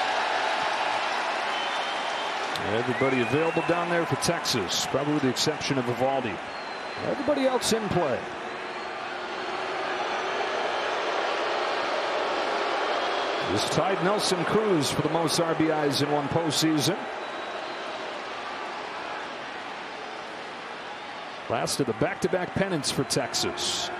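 A large crowd cheers and roars in a big open stadium.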